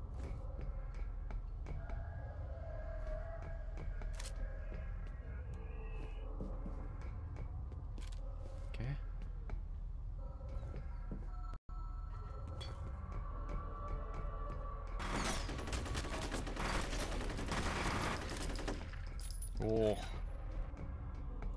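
Footsteps clang on metal stairs and grating.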